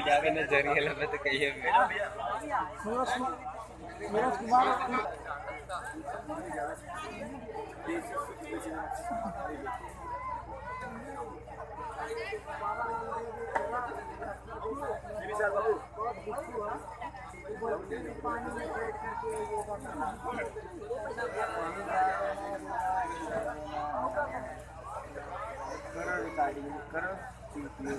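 A crowd of women and men chatter close by throughout.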